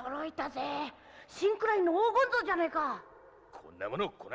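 A young woman exclaims in surprise.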